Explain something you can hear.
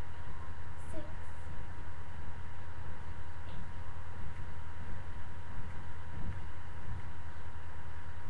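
Feet thump on the floor as a girl jumps up and down.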